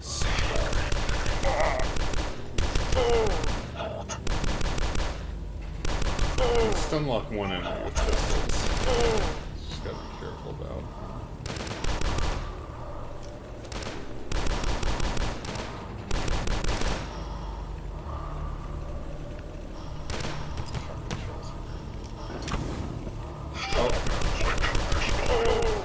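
Monsters growl and screech.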